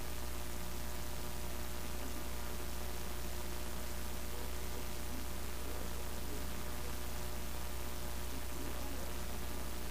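A man talks quietly at a distance in a large room.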